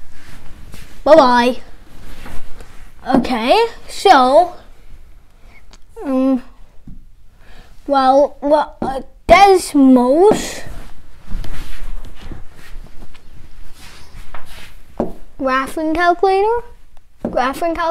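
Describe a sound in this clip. A young boy speaks clearly and with animation, close by.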